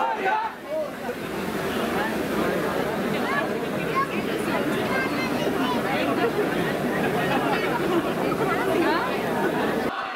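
A large crowd chatters and chants in a dense, echoing din.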